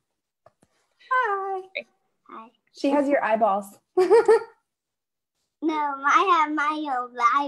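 A second young woman answers with animation over an online call.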